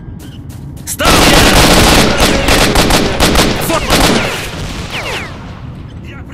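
An assault rifle fires in rapid bursts.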